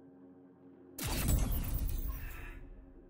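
A game menu plays a loud whooshing chime as an upgrade is unlocked.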